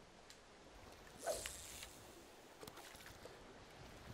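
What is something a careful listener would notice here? A fishing lure splashes softly into water.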